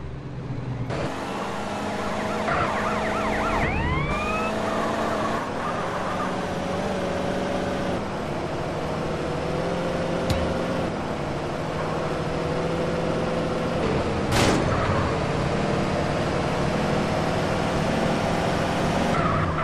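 A car engine hums steadily, rising and falling with speed.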